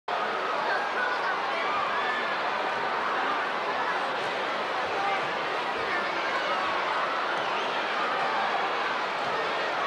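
Many voices in a large crowd shout and whistle.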